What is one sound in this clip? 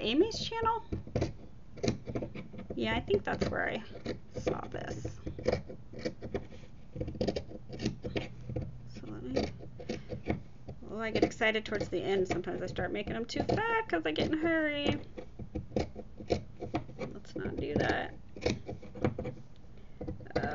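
Scissors snip through knitted yarn.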